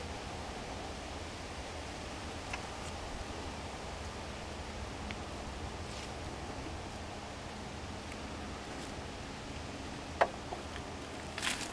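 A small walk-behind garden tractor engine runs.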